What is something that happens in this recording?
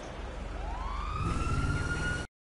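A car engine revs up.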